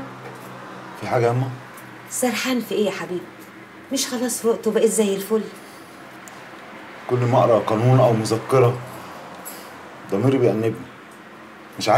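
A man speaks close by in a choked, distressed voice.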